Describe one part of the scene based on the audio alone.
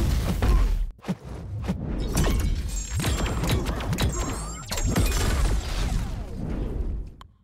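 Punches and kicks land with sharp game hit sounds.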